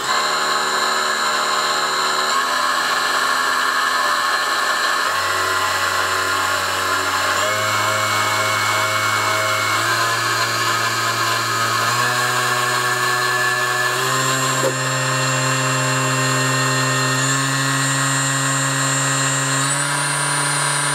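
An electric motor whines steadily, its pitch jumping to a new note every couple of seconds.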